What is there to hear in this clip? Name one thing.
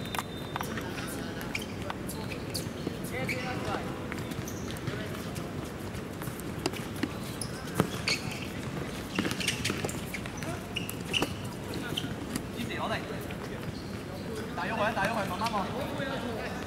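Shoes scuff and squeak on the hard court.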